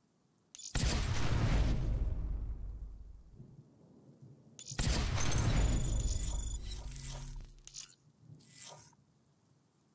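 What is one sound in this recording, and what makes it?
A deep whooshing sound swells and fades as a game menu changes.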